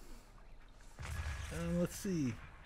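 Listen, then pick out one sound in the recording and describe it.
A bomb explodes with a deep boom.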